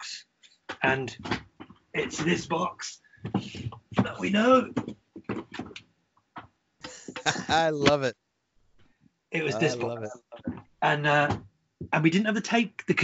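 A middle-aged man with a headset microphone talks and laughs.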